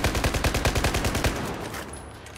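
A rifle fires a rapid burst of shots that echo indoors.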